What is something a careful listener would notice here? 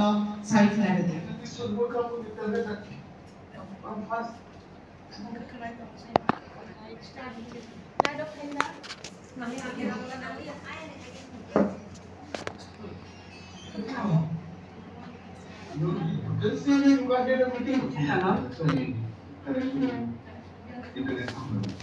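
A woman talks over an online call, heard through a loudspeaker.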